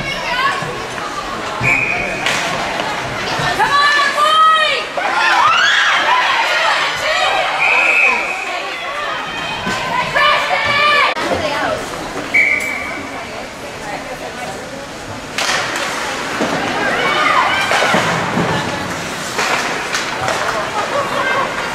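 Hockey sticks clack against the puck and each other.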